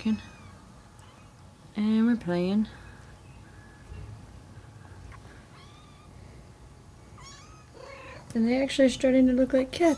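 Kittens meow loudly and repeatedly, close by.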